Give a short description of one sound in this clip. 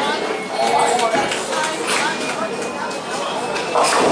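A bowling ball rolls and rumbles down a wooden lane.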